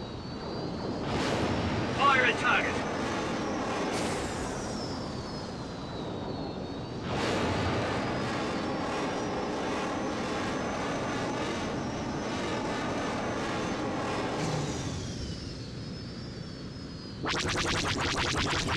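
A starfighter engine roars steadily.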